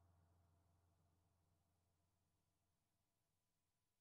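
A low electronic synth tone rings out and slowly fades away.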